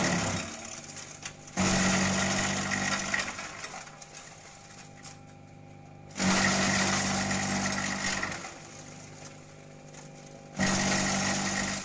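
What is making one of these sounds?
An electric motor hums steadily.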